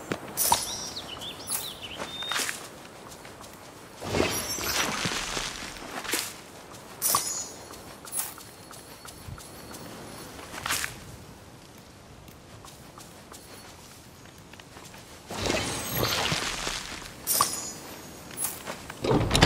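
Coins jingle as they are picked up.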